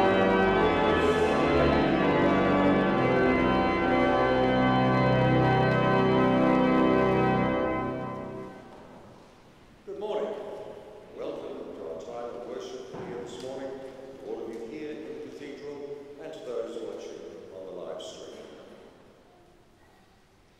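A choir sings together, echoing through a large hall.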